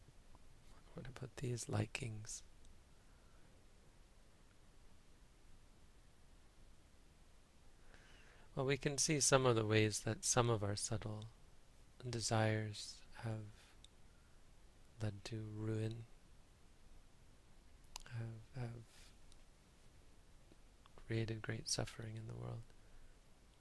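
A man speaks calmly and slowly into a nearby microphone, with long pauses.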